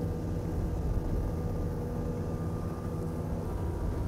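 Water rushes and churns behind a speeding boat.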